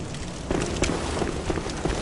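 Footsteps patter down stone stairs.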